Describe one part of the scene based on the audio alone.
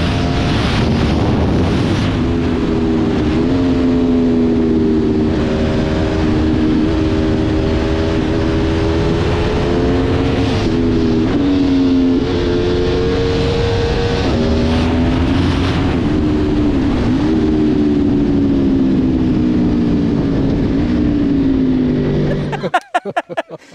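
A motorcycle engine hums loudly, its pitch rising and falling as it speeds up and slows down.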